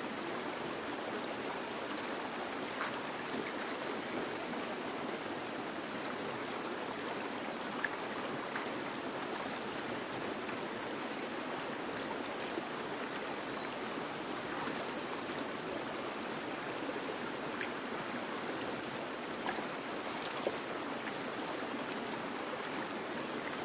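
Hands splash and swish leaves in water.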